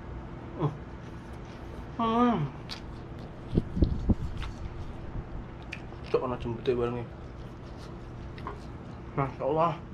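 A young man chews food noisily.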